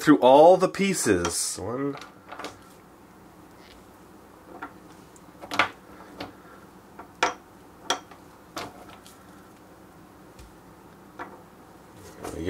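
Plastic toy pieces click and knock together.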